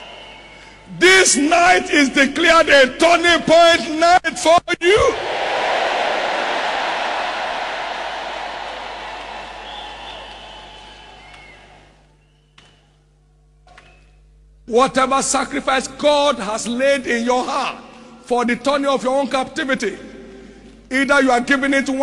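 A man preaches loudly and with animation through a microphone in a large hall.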